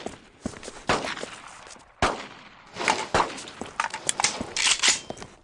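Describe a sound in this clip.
Gunshots crack loudly in short bursts.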